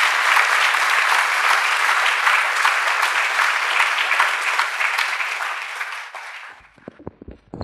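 An audience claps loudly in a large echoing hall, then the applause dies away.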